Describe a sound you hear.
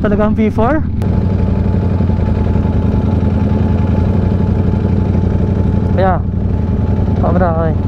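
A motorcycle engine idles nearby.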